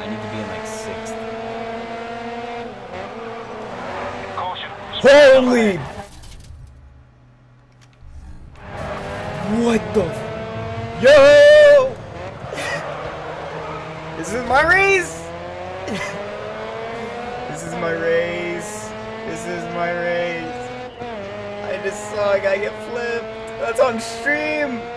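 A rally car engine roars and shifts through the gears.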